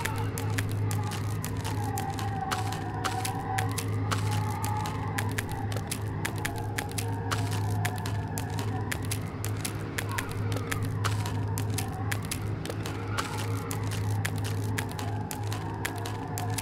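Footsteps tap on a metal walkway.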